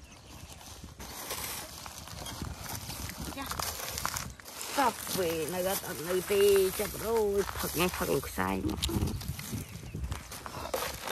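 Plastic bags rustle and crinkle as hands handle them.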